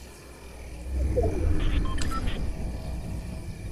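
An alert tone chimes.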